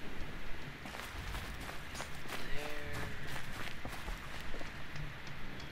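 Footsteps crunch on dirt and wooden planks.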